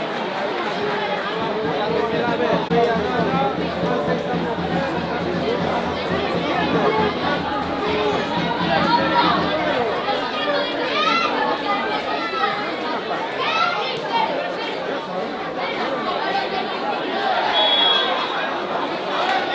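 Players shout to each other outdoors on an open field.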